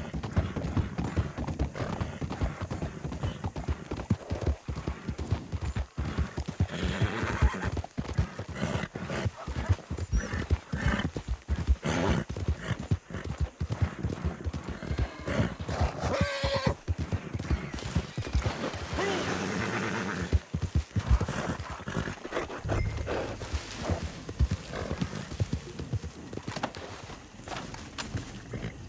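Horse hooves clop steadily on wood and dirt.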